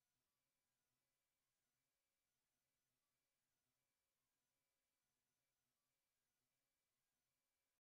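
A modular synthesizer plays a soft, repeating sequence of electronic tones.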